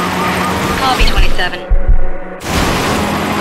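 A car crashes and tumbles with a loud thud.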